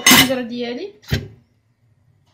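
A metal pot lid clanks shut onto a pot.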